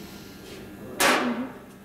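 A glass bottle is set down on a metal table with a clunk.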